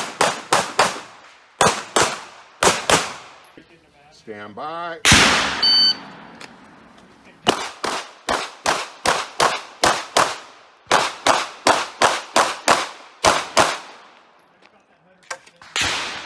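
Rapid pistol shots crack and echo outdoors.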